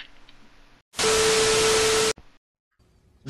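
A loud burst of television static hisses.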